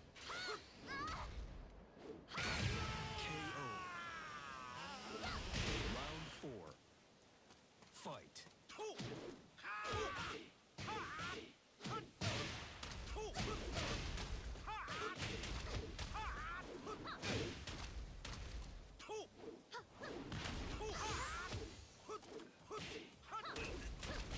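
Punches and kicks land with sharp thuds in a video game fight.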